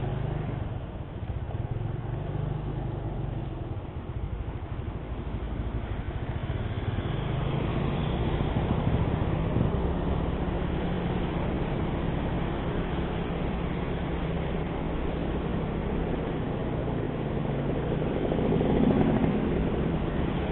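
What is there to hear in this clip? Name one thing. Wind rushes past a moving scooter.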